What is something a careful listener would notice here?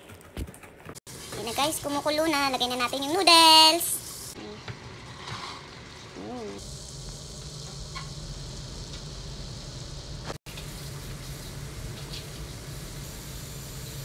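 Water boils and bubbles in a pot.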